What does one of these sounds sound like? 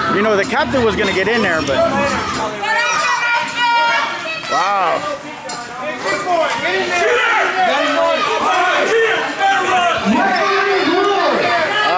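A crowd cheers and jeers in the background.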